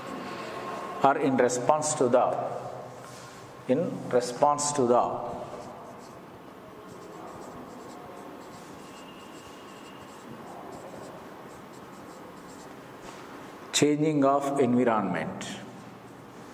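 A marker squeaks across a whiteboard in short bursts.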